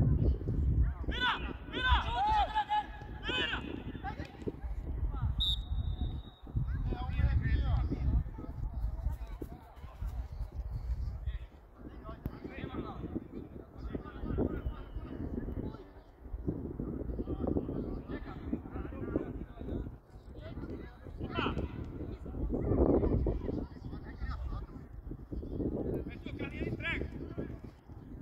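Young players shout to each other across the field, far off.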